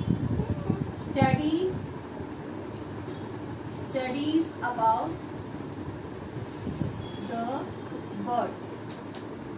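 A young woman speaks slowly and calmly, close by.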